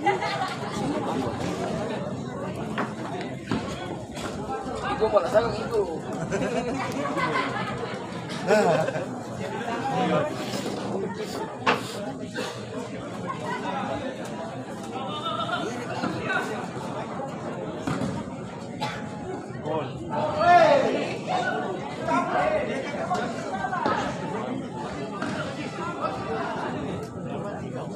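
A crowd of spectators chatters and shouts outdoors.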